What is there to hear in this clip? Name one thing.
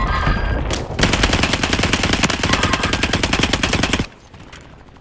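A machine gun fires rapid bursts close by.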